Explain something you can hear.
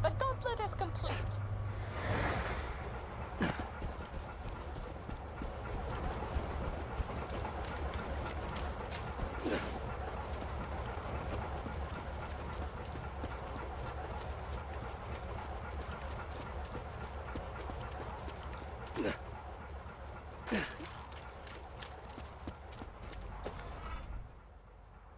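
Footsteps run quickly over snow and hard floors.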